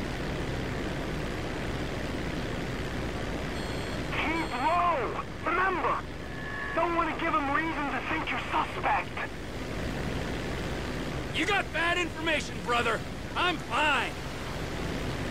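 A propeller plane's engine drones steadily.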